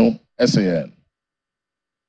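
A man speaks formally into a microphone.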